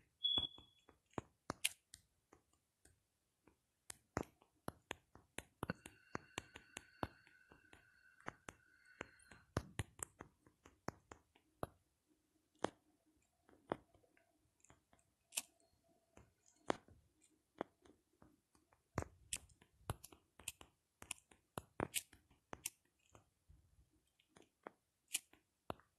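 Keyboard taps click quickly and unevenly on a phone.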